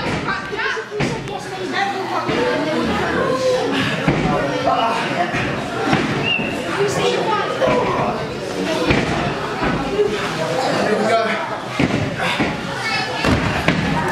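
Wrestlers thud heavily onto a ring mat.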